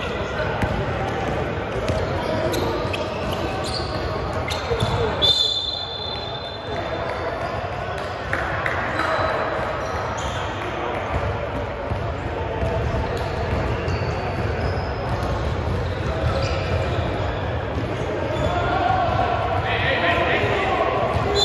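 Voices of players and onlookers echo through a large hall.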